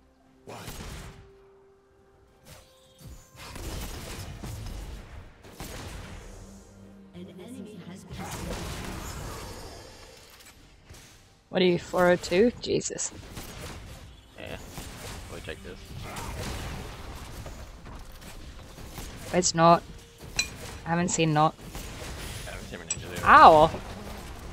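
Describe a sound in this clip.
Game battle sounds clash and zap.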